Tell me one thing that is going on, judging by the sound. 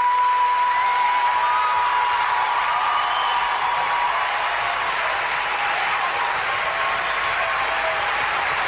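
A woman sings a long, high held note with strong emotion, heard through a recording.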